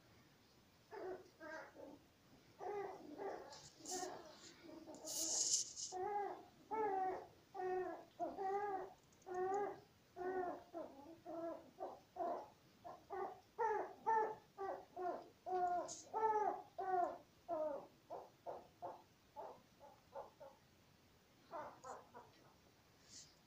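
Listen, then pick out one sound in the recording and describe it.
A puppy yaps again and again in short, high barks.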